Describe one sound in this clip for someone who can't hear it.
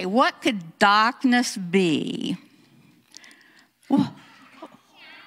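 An elderly woman speaks with feeling into a microphone, heard through loudspeakers.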